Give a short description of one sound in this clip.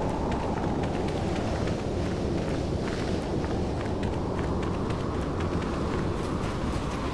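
Footsteps run quickly over sand.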